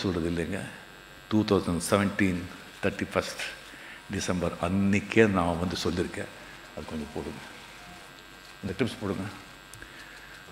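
An elderly man speaks with animation into a microphone, his voice carried over loudspeakers.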